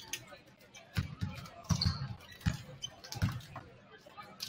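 A basketball bounces on a hard wooden court.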